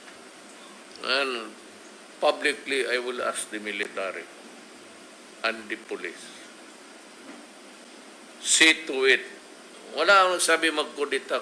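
An elderly man speaks calmly and haltingly into a microphone.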